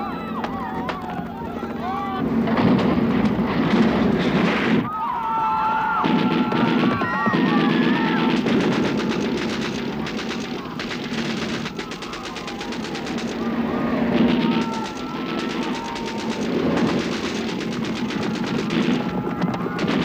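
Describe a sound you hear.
Horses gallop across sand.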